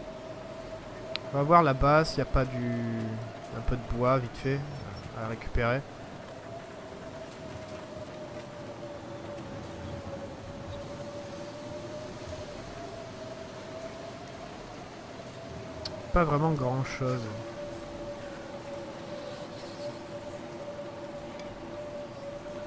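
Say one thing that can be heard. A strong wind howls steadily in a snowstorm.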